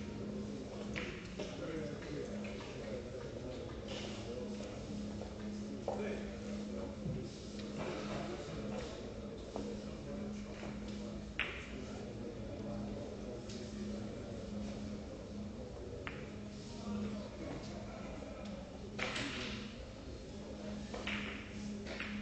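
Billiard balls click against each other.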